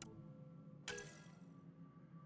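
A menu chime sounds briefly.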